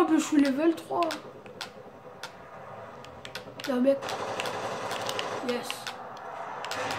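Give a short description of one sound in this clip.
Video game sounds play through a television loudspeaker.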